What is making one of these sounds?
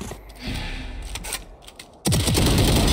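A rifle fires in quick short bursts.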